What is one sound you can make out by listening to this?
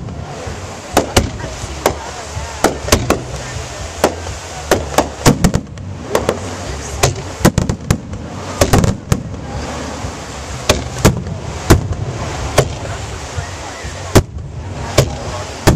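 Aerial firework shells burst with sharp booms, echoing outdoors.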